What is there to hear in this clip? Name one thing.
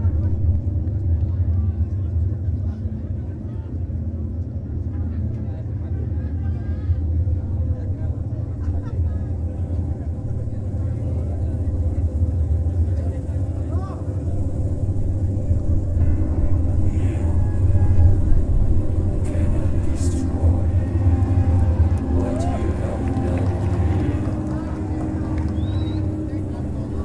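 Drums pound loudly and fast through a large outdoor sound system.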